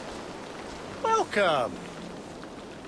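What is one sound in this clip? A man greets loudly in a friendly voice.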